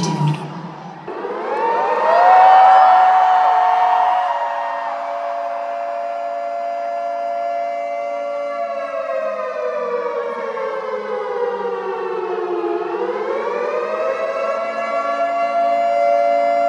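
Music with long, slowly gliding held notes plays loudly over big loudspeakers.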